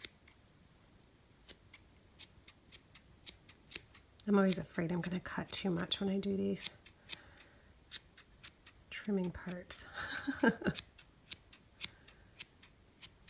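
Scissors snip quickly through yarn, close by.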